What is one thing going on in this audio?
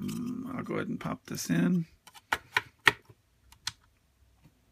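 A hand handles something close by with sharp clicks and knocks.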